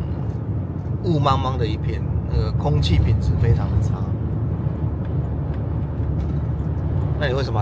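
A car engine hums and tyres rumble steadily on the road, heard from inside the car.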